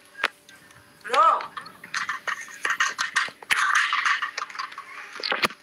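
A man speaks through a phone.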